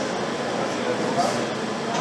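A wrench clicks against metal.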